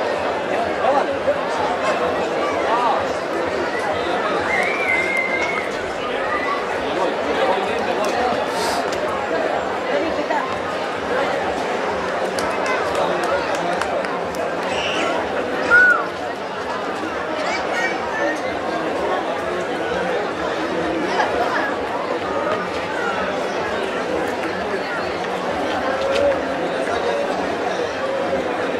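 People in a crowd shout and whistle now and then.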